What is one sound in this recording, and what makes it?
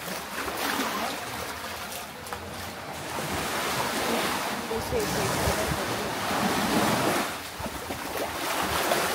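Many people chatter nearby under an echoing rock overhang.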